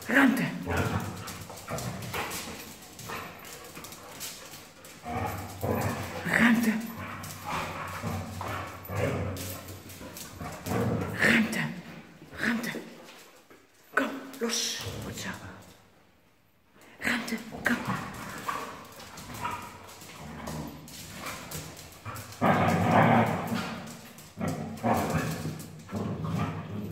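Dog claws scrabble and patter on a hard floor.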